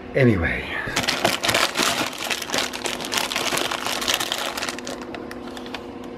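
A plastic snack bag crinkles as it is handled.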